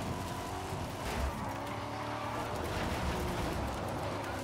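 Tyres skid and crunch over loose dirt.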